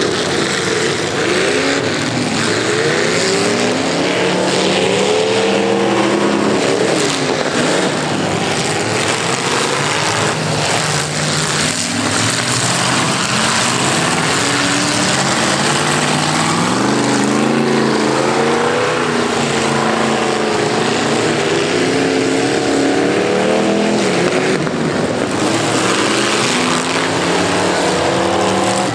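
Several car engines roar and rev loudly outdoors.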